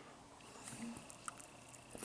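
A man chews food, smacking loudly.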